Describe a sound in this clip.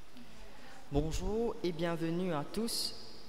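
A young man reads out into a microphone in a large echoing hall.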